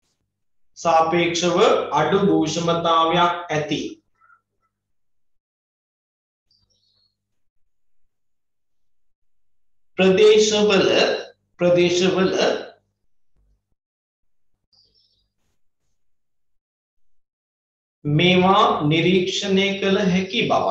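A man speaks calmly and clearly, close by, explaining with pauses.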